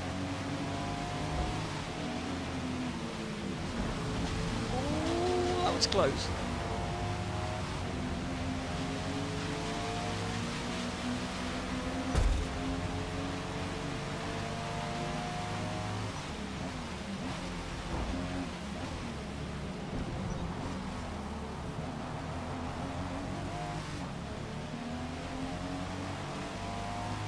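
Rain patters steadily on a car's windscreen.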